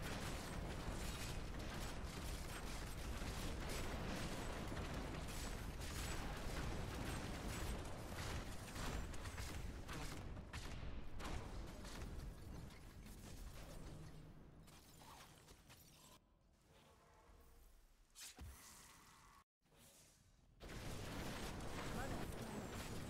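Fiery explosions roar and crackle.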